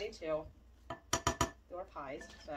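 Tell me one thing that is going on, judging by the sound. A spatula knocks against a metal pot.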